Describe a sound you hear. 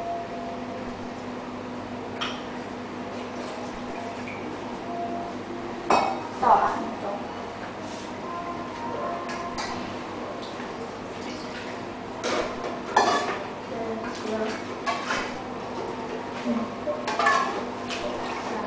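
An electric grinder hums steadily.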